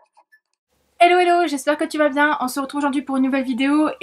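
A woman speaks with animation close to a microphone.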